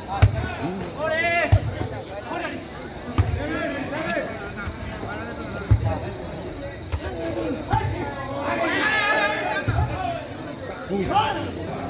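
Men shout and cheer loudly.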